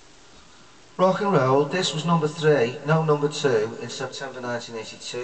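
A man sings close to a microphone.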